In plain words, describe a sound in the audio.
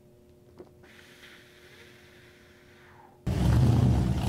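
A man exhales a long breath of vapour.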